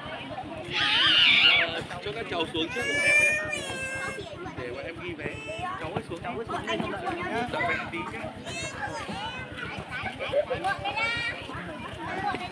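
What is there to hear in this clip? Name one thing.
Children shout and squeal nearby.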